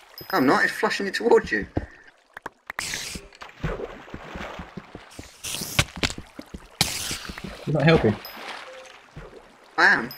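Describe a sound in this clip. A sword swishes and thuds as it cuts through cobwebs.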